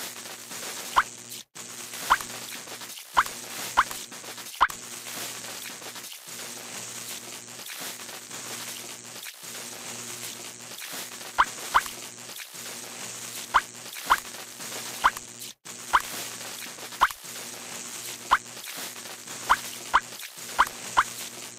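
Short bright clicks sound now and then.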